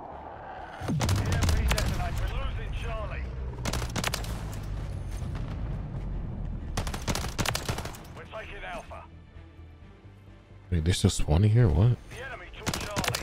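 Pistol shots fire in quick bursts with a sharp echo.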